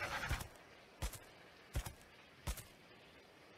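Heavy footsteps thud on sand.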